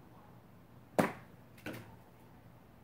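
A stick strikes the ground sharply.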